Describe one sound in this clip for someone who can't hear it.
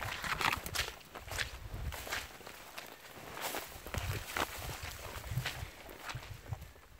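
Dry grass crackles and pops as it burns.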